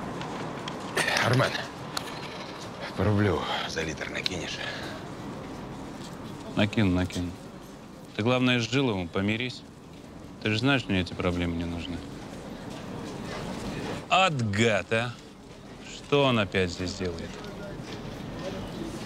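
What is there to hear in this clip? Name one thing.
Another man answers calmly close by.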